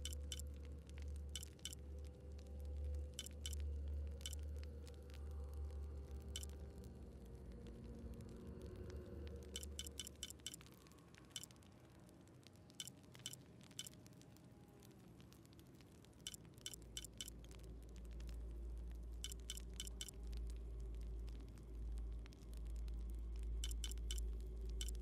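Short, sharp menu clicks tick again and again.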